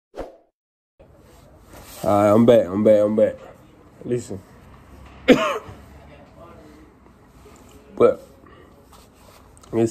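A young man speaks casually and close up.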